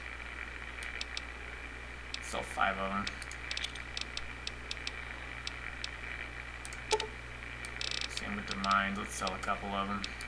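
Short electronic menu clicks tick repeatedly.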